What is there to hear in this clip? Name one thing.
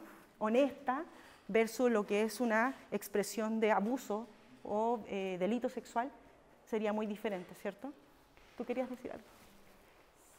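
A woman speaks with animation to a room, close by.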